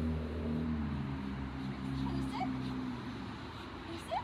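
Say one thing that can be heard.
A young woman talks softly to a dog nearby.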